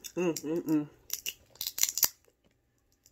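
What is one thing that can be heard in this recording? A crisp wrapper crinkles and crackles as hands peel it.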